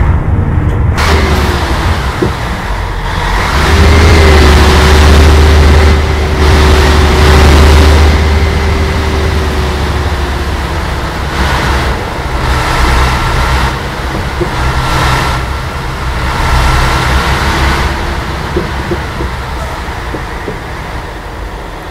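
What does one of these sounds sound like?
Water splashes and rushes around a bus.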